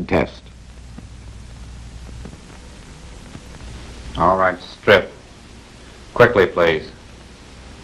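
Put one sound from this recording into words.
A man speaks in short, firm phrases.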